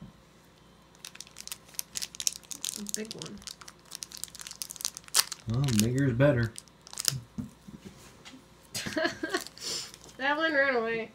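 Crinkly plastic wrapping rustles and crackles in a hand.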